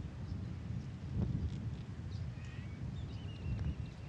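A putter softly taps a golf ball.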